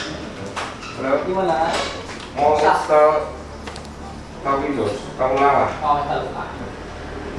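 A young woman speaks casually close to a microphone.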